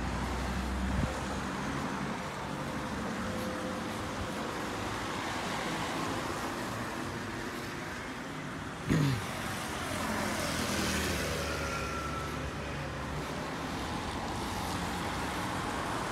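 A car drives past on a wet road.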